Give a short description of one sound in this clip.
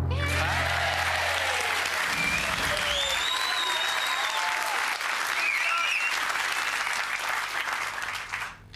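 A studio audience applauds loudly.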